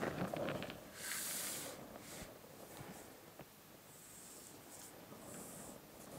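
A pencil scratches across paper in short strokes.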